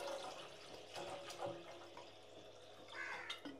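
Water pours from a bottle into a pot.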